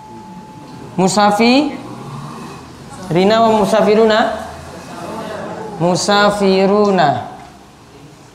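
A man speaks in a clear, drawn-out voice.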